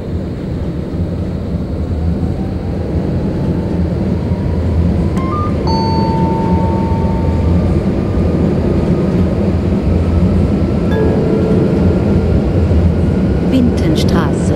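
A tram's electric motor whines, rising slowly in pitch.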